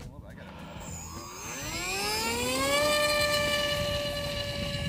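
A small electric motor whines, rising in pitch, then holds a steady high whine.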